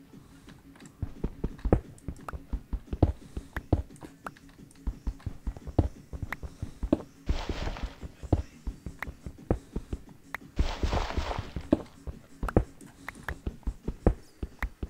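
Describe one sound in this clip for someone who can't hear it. A pickaxe chips rapidly at stone with sharp, repeated knocks.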